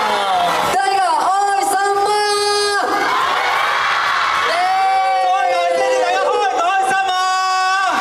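A crowd cheers and screams.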